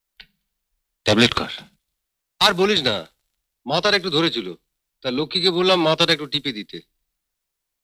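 A young man speaks drowsily, lying down.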